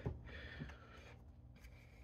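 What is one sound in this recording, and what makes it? A plastic cover clacks softly as it is lifted off.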